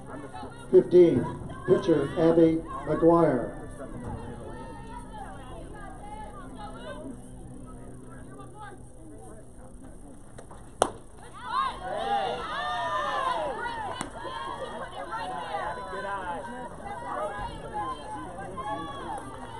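Young women shout and cheer from across an outdoor field.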